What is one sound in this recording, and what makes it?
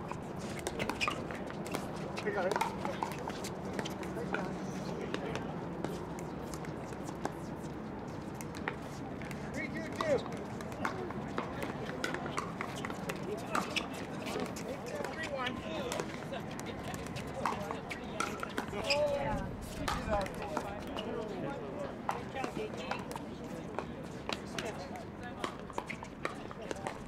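Paddles hit a plastic ball with sharp pops, on and off.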